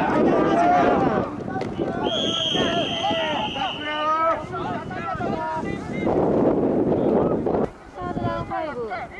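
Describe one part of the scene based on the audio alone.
A crowd of men and boys shouts and cheers outdoors.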